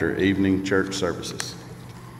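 A middle-aged man speaks calmly through a microphone.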